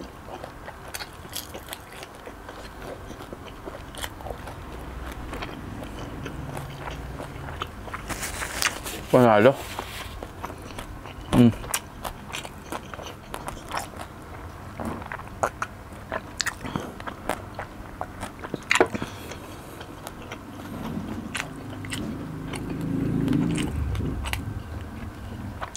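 A man chews crunchy food close to a microphone with wet, crisp smacks.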